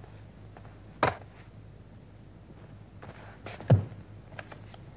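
Rifles clatter as guards cross them together.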